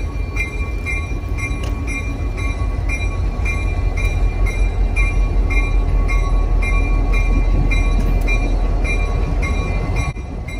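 A locomotive bell rings steadily.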